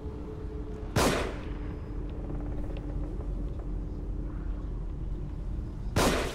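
A revolver fires loud, sharp shots.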